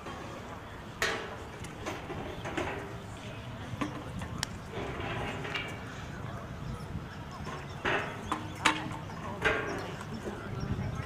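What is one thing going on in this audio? A woman talks casually at a distance outdoors.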